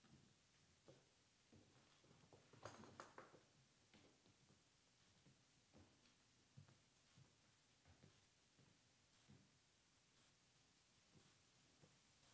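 Footsteps thud softly as people walk about.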